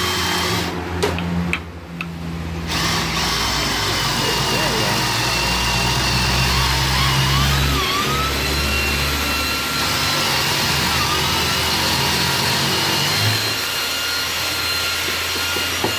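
An electric drill whirs steadily as it bores into wood.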